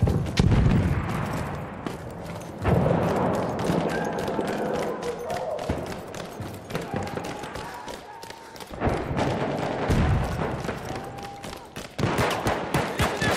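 Boots tread quickly on a hard floor in a large echoing hall.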